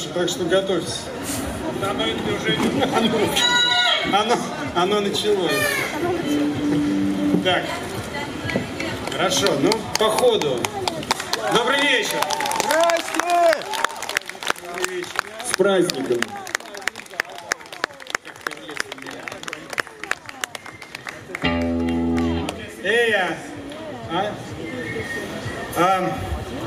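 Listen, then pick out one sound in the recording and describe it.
A live band plays electric guitars.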